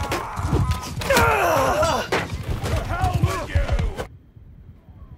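Swords clash and armour clanks in a noisy battle.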